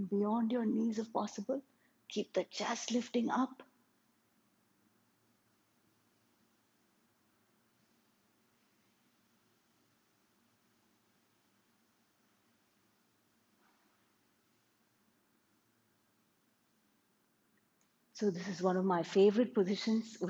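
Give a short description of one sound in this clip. A woman speaks calmly and clearly, as if giving instructions, close to a microphone.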